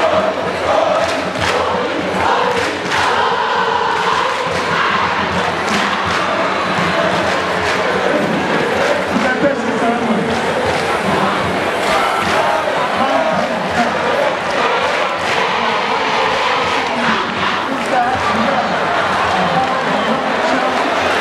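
A large crowd cheers and chants in an open stadium.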